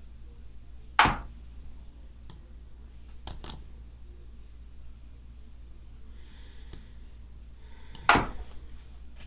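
A chess piece clicks sharply onto a wooden board.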